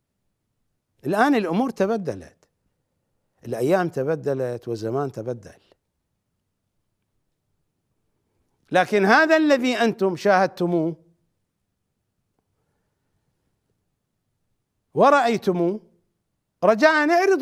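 A middle-aged man speaks emphatically into a microphone, pausing between phrases.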